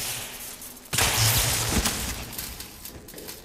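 An electric weapon crackles and sparks in a loud burst.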